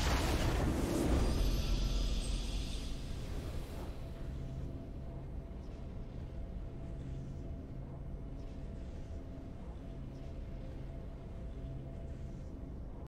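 Low game music hums steadily.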